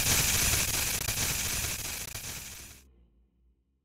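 Loud static hisses and crackles, then cuts off.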